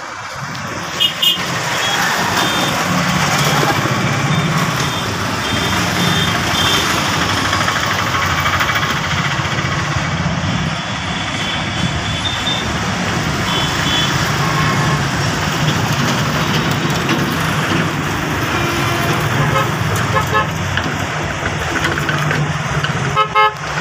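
Motorbike horns beep in short bursts.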